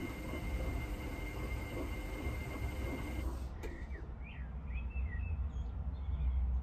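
Water and suds slosh inside a washing machine.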